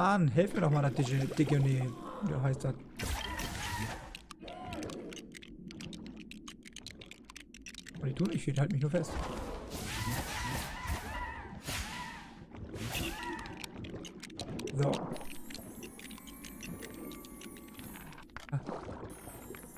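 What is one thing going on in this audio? A magic swirl crackles and hums.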